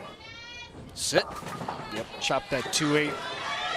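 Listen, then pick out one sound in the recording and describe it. Bowling pins crash and clatter.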